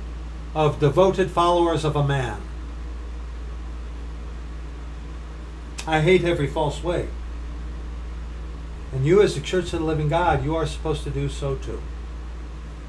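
A middle-aged man speaks close to a microphone, in short bursts with pauses.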